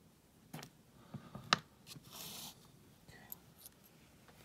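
Small coins click lightly against a surface.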